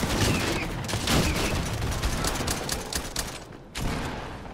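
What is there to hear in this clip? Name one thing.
A gun fires several quick shots.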